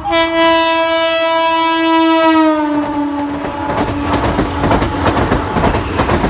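A train rumbles and rattles past close by.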